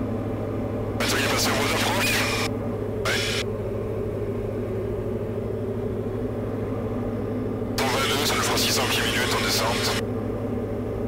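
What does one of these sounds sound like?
A man speaks briefly over a crackly headset intercom.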